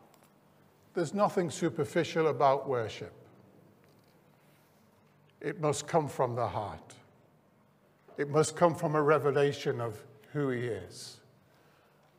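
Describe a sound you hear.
An older man speaks calmly through a microphone, with pauses.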